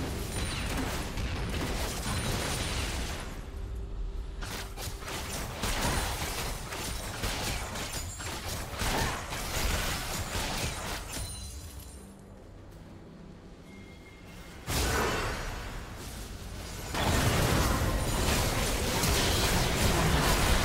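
Magic spells whoosh and crackle in a video game fight.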